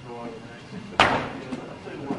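A heavy metal ball thuds onto a hard floor.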